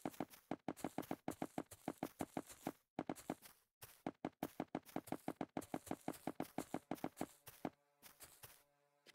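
Blocks are placed one after another with quick, rhythmic clicks.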